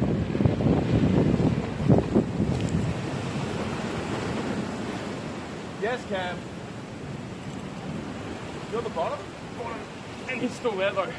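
Waves crash and wash against rocks close by.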